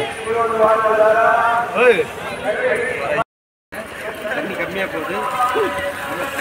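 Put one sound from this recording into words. A crowd of men chants loudly.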